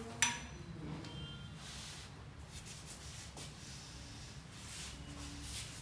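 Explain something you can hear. A wheelchair rattles softly.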